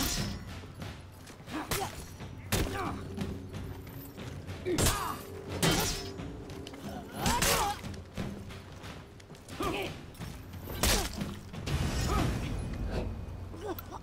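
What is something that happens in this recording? Swords clash and strike in sharp, repeated blows.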